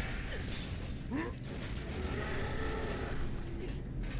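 Boots clank on metal ladder rungs.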